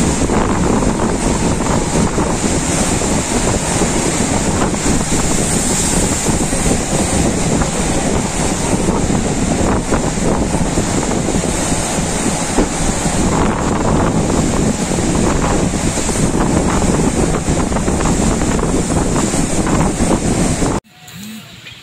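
Waves crash and surge onto the shore.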